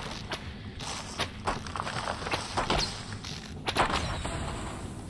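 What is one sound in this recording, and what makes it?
Blades clash and thud in a fight.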